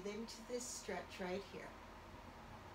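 An older woman speaks calmly and briefly, close by.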